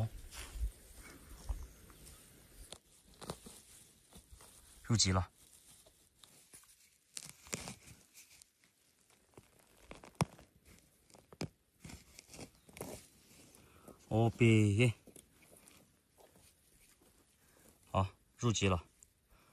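Hands rustle and scrape through dry pine needles and soil.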